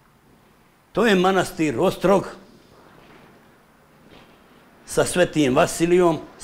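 A man speaks nearby, explaining with animation in short bursts.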